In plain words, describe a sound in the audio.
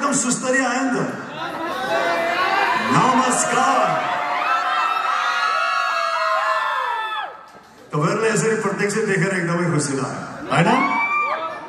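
A man sings into a microphone, heard through loudspeakers in a large hall.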